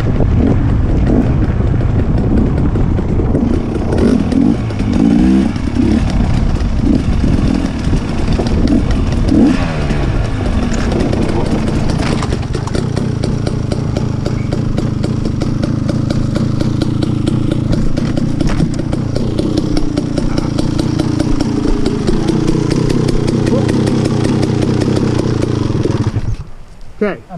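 A dirt bike engine revs loudly close by, rising and falling.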